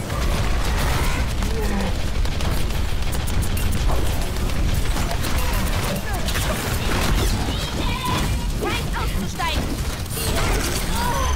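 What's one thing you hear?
Pistols fire rapid shots.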